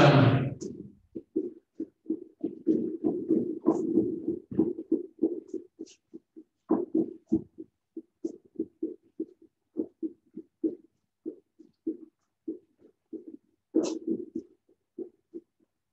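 Feet tap quickly and rhythmically on a hard floor as a child hops.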